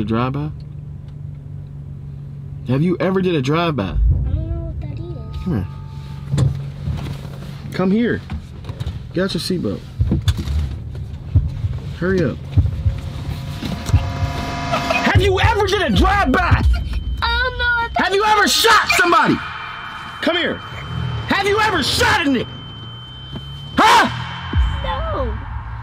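A young man laughs into a microphone up close.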